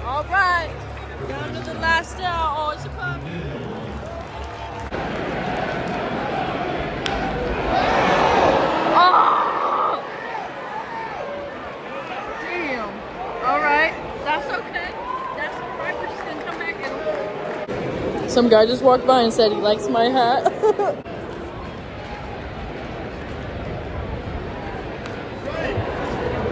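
A large crowd murmurs and chatters in an open-air stadium.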